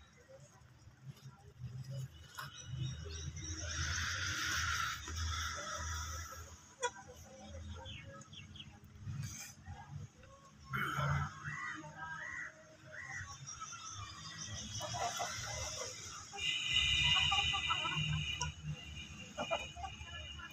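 Chickens peck at greens on hard ground.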